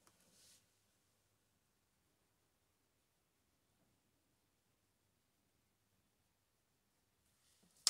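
A makeup brush brushes softly against skin.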